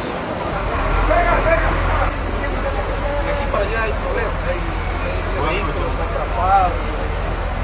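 A man talks with animation.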